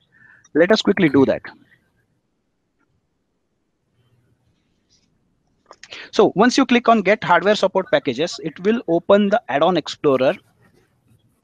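A young man speaks calmly and close to a microphone, in short bursts with pauses.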